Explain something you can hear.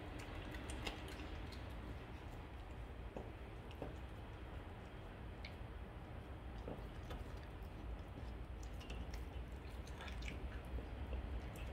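A dog gnaws and crunches on a bone close by.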